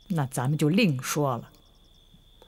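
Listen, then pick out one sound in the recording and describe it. A middle-aged woman speaks firmly and close by.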